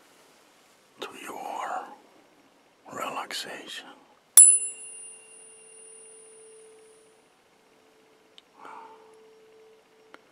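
A woman speaks quietly and closely.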